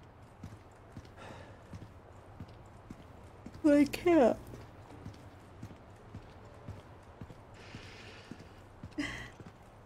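Footsteps thud softly on a stone floor.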